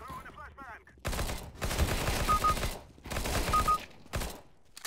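A rifle fires rapid, loud bursts.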